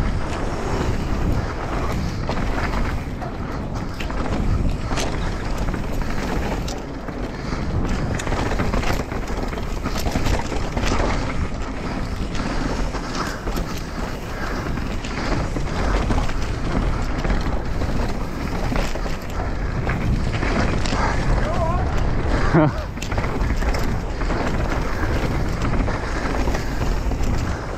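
A bike rattles and clatters over rocks and bumps.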